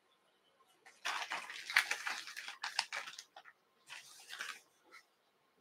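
Hands rustle and crinkle small materials close by.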